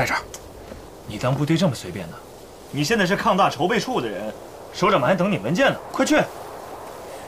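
A second young man answers with animation, up close.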